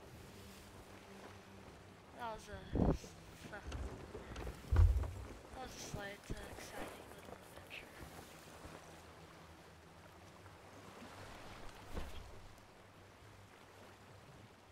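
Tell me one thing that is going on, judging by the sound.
Waves wash against a wooden ship's hull.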